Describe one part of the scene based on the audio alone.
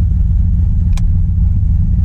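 A switch clicks once.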